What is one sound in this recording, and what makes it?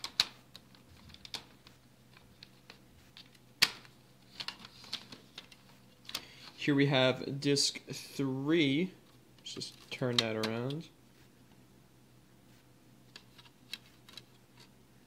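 Plastic disc cases click and rattle as they are handled.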